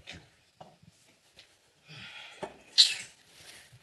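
An older woman speaks sharply and close by.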